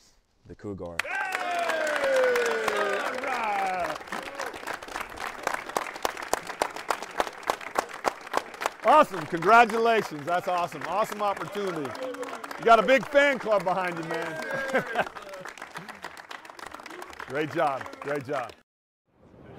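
A crowd of young men claps and cheers.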